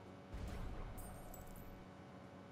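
Bright chiming game tones sparkle.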